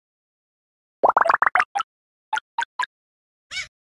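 Bright game pickup chimes ring out in quick succession.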